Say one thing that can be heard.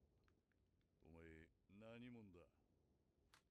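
A man nearby speaks in drawn-out, rising and falling sounds.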